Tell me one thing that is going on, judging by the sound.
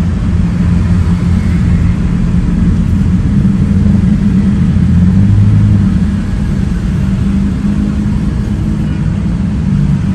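Motorbike engines putter close by in slow traffic.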